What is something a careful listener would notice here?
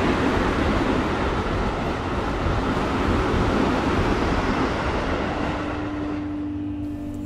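A subway train rushes past with a loud, rumbling roar that slowly fades.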